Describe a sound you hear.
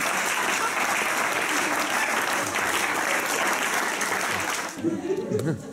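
An audience applauds loudly in a hall.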